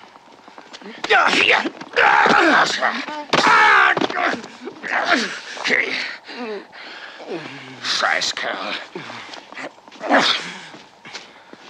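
A man yells and grunts loudly.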